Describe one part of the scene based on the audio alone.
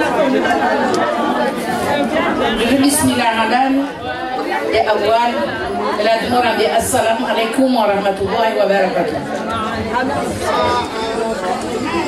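A middle-aged woman speaks with animation into a microphone.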